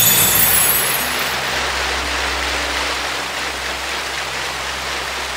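Water rushes and splashes under a vehicle skimming across the sea.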